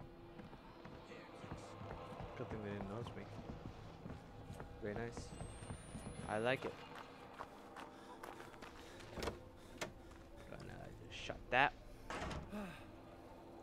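Footsteps creak on wooden floorboards and stairs.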